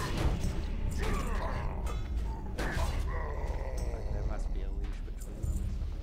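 Weapons clash and magic crackles in a fight.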